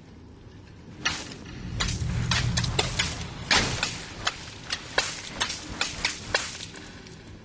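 Water splashes and sprays.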